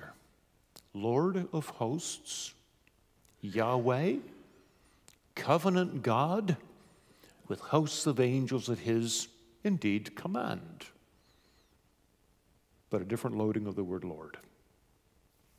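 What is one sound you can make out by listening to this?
A man reads aloud calmly through a microphone, with pauses, in an echoing room.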